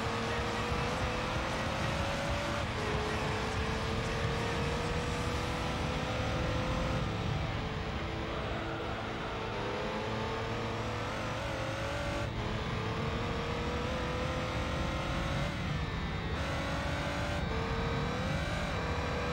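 A racing car engine revs high and steadily climbs in pitch, dropping briefly at each gear change.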